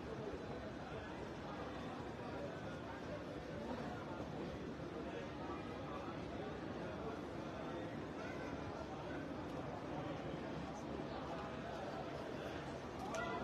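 A large crowd murmurs and talks outdoors.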